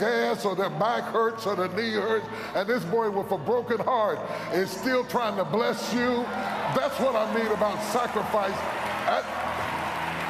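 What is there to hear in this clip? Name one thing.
An older man preaches loudly and with passion through a microphone in a large echoing hall.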